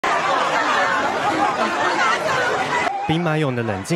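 A large crowd shouts and clamours loudly.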